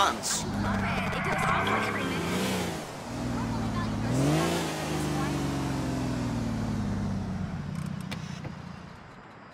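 A sports car engine revs loudly and roars as the car drives off.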